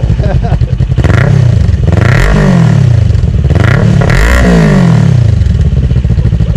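A motorcycle engine revs up and down several times, loud and close.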